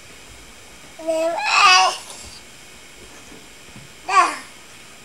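A baby squeals and babbles close by.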